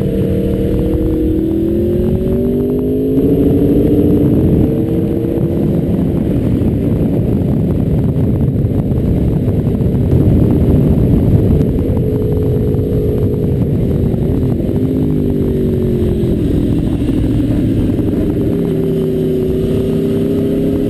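A motorcycle engine drones up close, its pitch rising and falling as it changes speed.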